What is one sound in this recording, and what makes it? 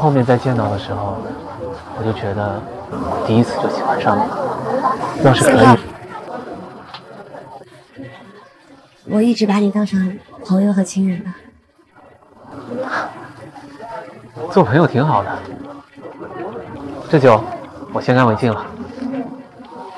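A young man speaks calmly and warmly, close by.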